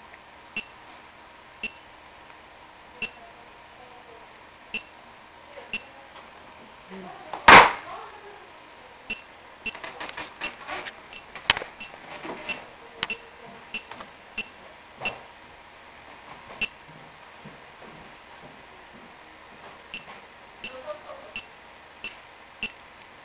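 A small electronic device gives short, high beeps at a steady pace.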